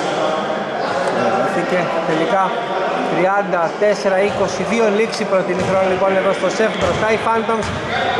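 Sneakers squeak on a wooden court in a large echoing hall.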